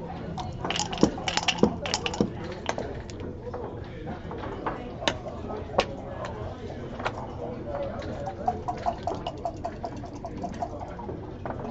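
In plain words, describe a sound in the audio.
Plastic game pieces click against a wooden board.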